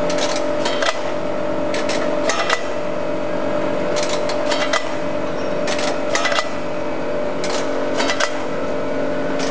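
A packing machine hums steadily.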